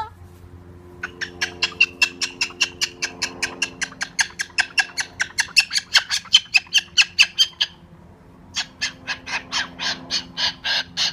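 A cockatoo makes a fast, steady clicking chatter.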